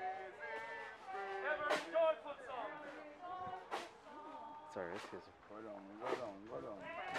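Men and women sing a slow hymn together outdoors.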